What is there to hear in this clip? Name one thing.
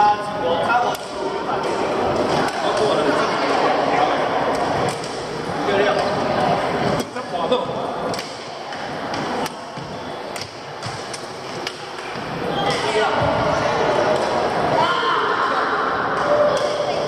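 Shuttlecocks are hit with sharp pops of rackets.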